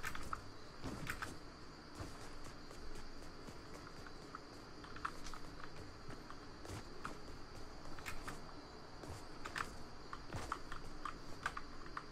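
Footsteps thud and clatter on wooden planks.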